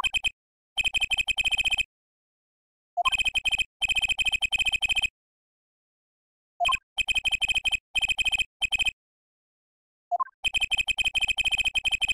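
Rapid electronic beeps chatter in quick bursts.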